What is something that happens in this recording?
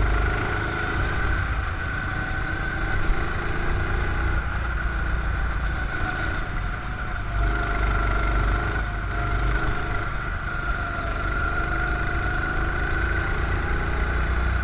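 Wind rumbles loudly past the driver.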